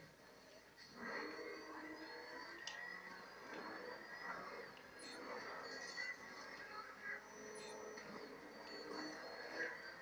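A car engine roars and revs through television speakers.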